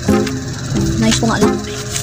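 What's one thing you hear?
A notebook page flips over.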